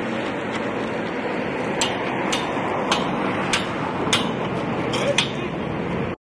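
A wheelbarrow rolls and rattles over gravel.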